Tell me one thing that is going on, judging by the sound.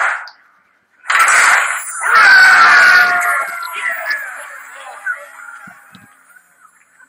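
A short triumphant game fanfare plays loudly, then rings out.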